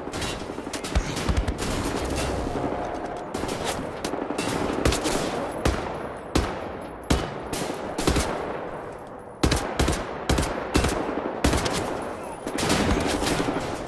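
Gunshots fire in quick bursts, each echoing briefly.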